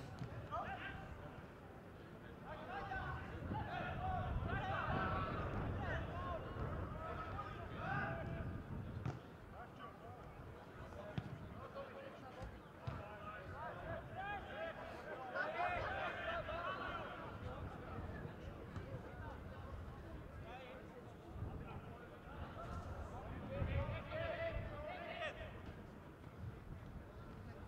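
Men shout to each other across an open football pitch.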